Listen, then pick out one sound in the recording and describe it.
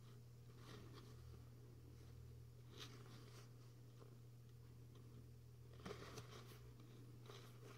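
Stiff paper cards rustle and tap as a hand shuffles them.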